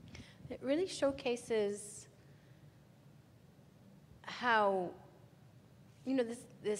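A woman speaks through a microphone in a large echoing hall, in short bursts.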